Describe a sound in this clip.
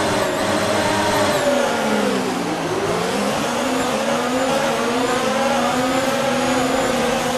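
A racing car engine roars, dropping in pitch as it slows and then rising again as it speeds up.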